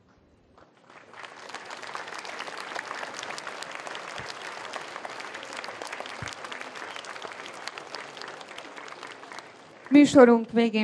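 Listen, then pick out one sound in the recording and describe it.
A crowd of children claps.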